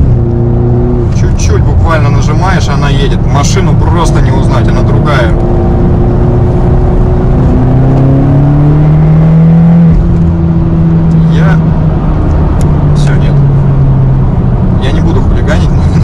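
A car engine hums steadily and rises in pitch as it speeds up.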